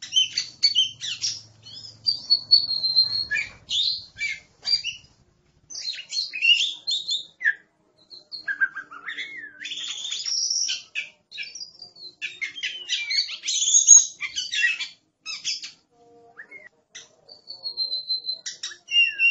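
A songbird sings a loud, varied song of whistles and chirps close by.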